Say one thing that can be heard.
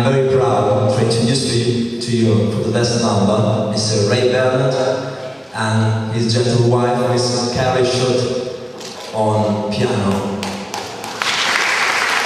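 A young man sings loudly into a microphone.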